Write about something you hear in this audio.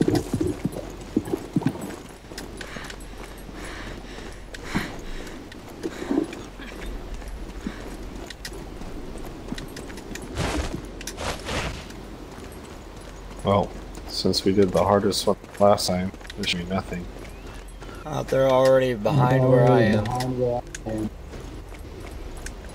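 Footsteps patter quickly on stone as a soldier runs.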